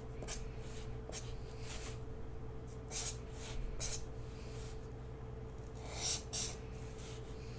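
A marker squeaks and scratches across paper in short strokes.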